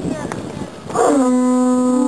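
A horn is blown with a long, steady note.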